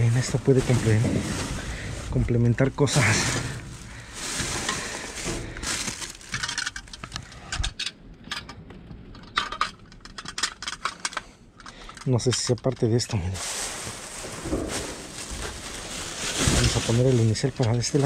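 Plastic bags rustle and crinkle as they are pushed aside.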